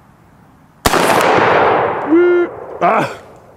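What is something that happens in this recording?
A steel target clangs and rings when struck.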